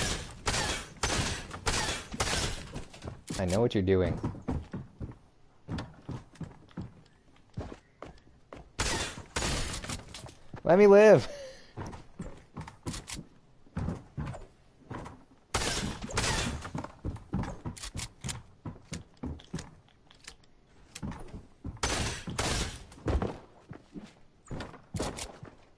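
Wooden walls and ramps clatter into place in quick bursts.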